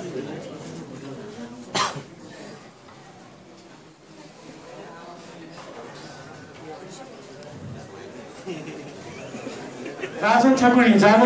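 An audience murmurs and chatters quietly.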